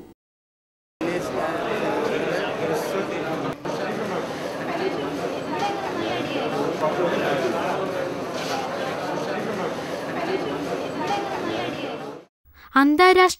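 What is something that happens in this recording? A crowd of people chatters indoors.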